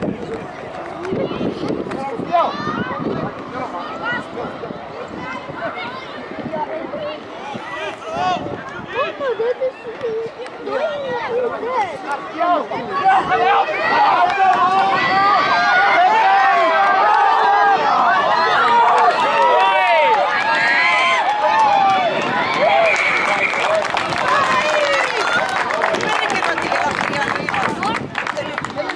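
A crowd of spectators cheers and shouts outdoors, growing louder as play goes on.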